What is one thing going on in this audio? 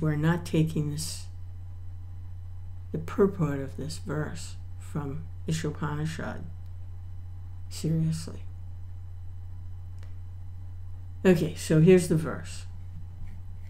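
An older woman speaks calmly and close to the microphone, in short bursts with pauses.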